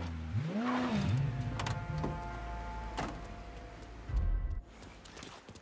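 A car engine rumbles and revs, then cuts off.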